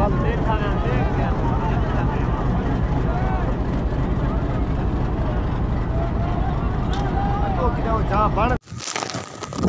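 A crowd of men talks and shouts close by.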